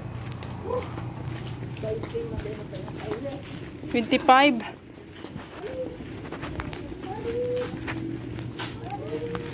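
Footsteps walk on a concrete road.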